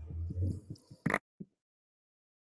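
Sand blocks crunch as they are broken.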